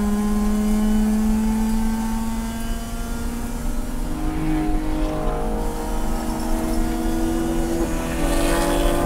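A race car engine roars loudly from inside the cabin, its pitch falling and then climbing as it accelerates.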